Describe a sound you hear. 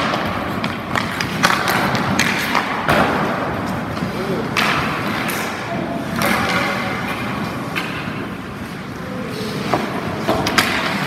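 A hockey goalie's skates scrape across ice in an echoing indoor rink.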